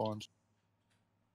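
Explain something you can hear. A young man speaks briefly and loudly, close to a microphone.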